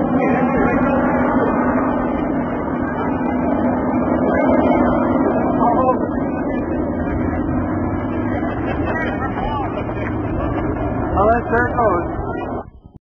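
A train rumbles and clatters steadily along the tracks.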